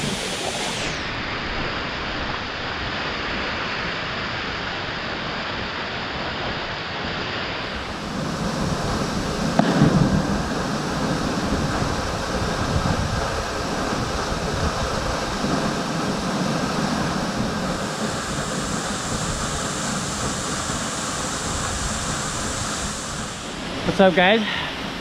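A waterfall roars steadily.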